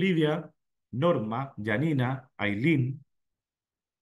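A man speaks calmly into a microphone, heard as on an online call.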